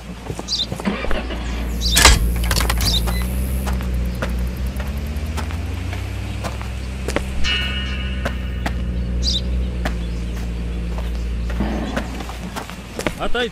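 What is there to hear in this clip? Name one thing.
A truck engine rumbles and idles nearby.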